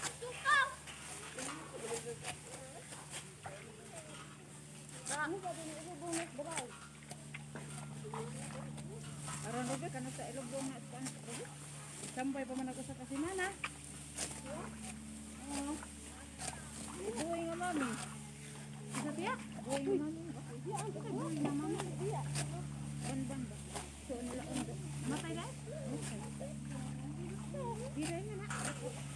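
Dry rice stalks rustle and crackle as they are cut by hand.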